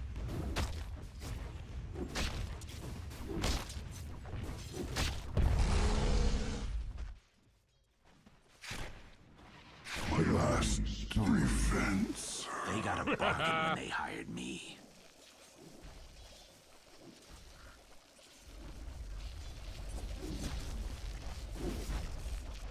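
Game spell effects crackle and clash in a fight.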